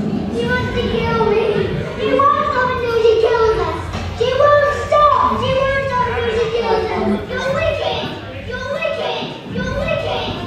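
A woman sings loudly through a sound system.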